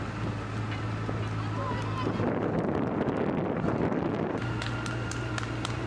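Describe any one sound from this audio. Running footsteps slap on pavement.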